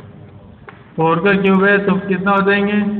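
A man speaks clearly and steadily, like a teacher explaining.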